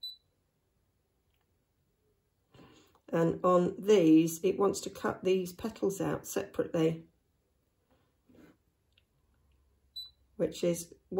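A touchscreen gives short high beeps when tapped.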